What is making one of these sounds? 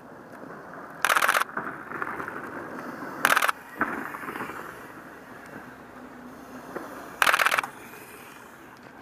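A bicycle rolls over a dirt trail, its tyres crunching on dry leaves.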